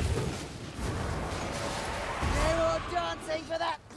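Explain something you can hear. A magical blast roars and crackles.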